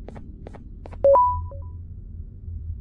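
An electronic beep sounds.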